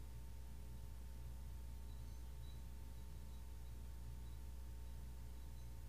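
A metal singing bowl hums with a soft, steady ringing tone.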